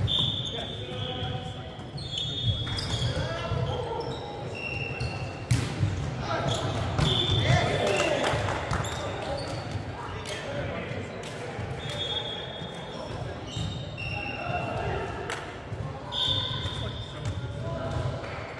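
Young men call out and talk in a large echoing hall.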